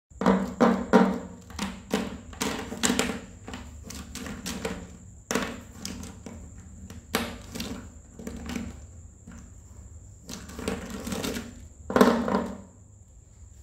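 Plastic marker pens clatter and knock together on a table.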